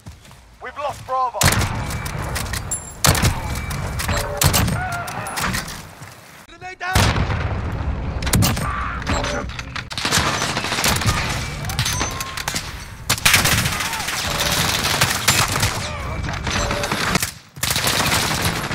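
A sniper rifle fires loud single shots.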